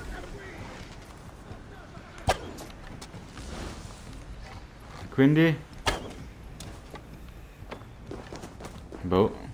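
A bowstring twangs sharply as an arrow is loosed.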